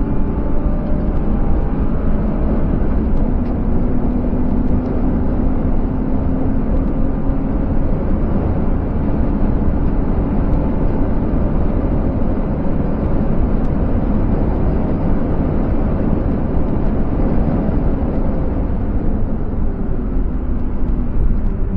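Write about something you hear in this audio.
A car engine roars loudly from inside the cabin as the car speeds along.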